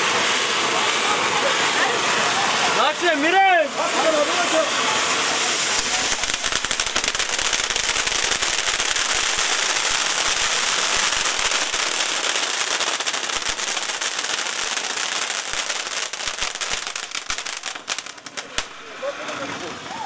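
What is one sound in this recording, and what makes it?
Firework fountains hiss loudly and steadily.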